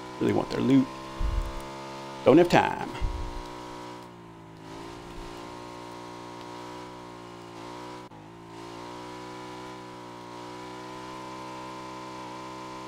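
A motorcycle engine hums steadily as the bike rides along a road.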